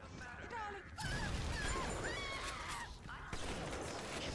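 A burst of fire roars and crackles.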